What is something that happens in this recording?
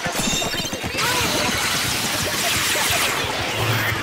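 A loud bomb bursts with a heavy splash.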